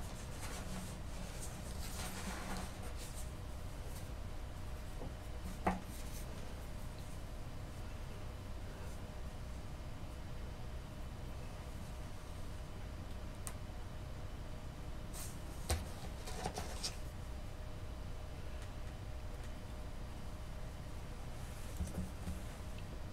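Hands scrape and tap lightly on a small clay sculpture.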